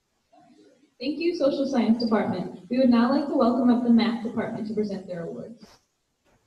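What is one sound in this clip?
A young woman speaks calmly into a microphone in an echoing hall.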